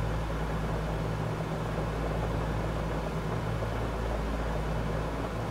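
Propeller engines drone steadily with a low hum.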